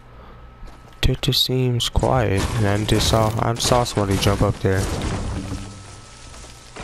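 A pickaxe strikes stone with a sharp crack.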